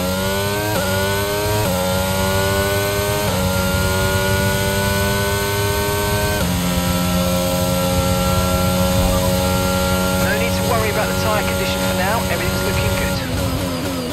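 A racing car engine screams at high revs, rising in pitch and dropping at each upshift.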